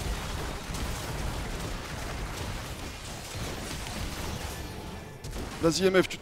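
Magic blasts and explosions crackle in a fast, busy fight.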